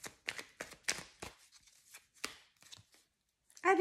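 Cards snap and tap as they are shuffled and laid down close by.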